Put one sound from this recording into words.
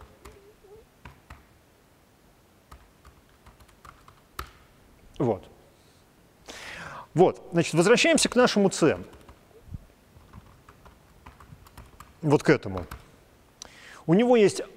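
Computer keys click softly.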